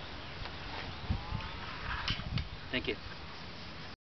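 A man speaks calmly outdoors, close by.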